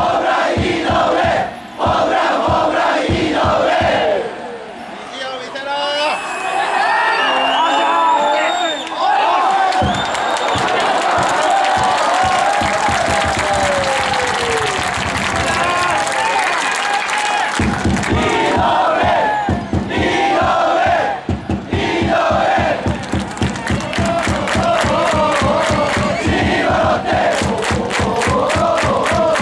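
A large stadium crowd chants and sings together outdoors.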